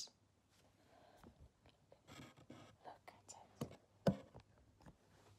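Soft rustling and handling noises come from yarn cones being moved.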